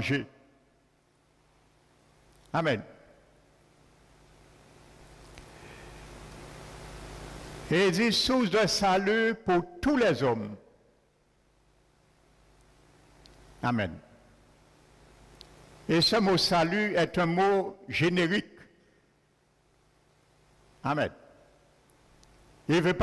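A man speaks through a microphone in bursts, with long pauses, in a room with a slight echo.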